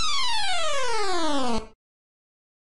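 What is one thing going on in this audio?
A retro arcade game plays a rapid tally of beeping bonus tones.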